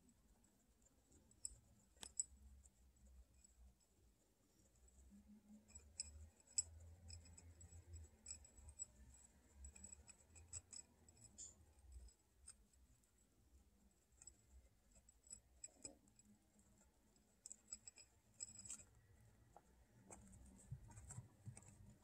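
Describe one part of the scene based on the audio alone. Guinea pigs crunch and nibble on dry food up close.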